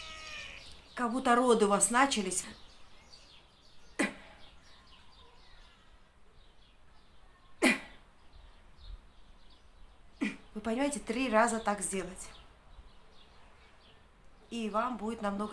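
A middle-aged woman speaks calmly and close by, with pauses.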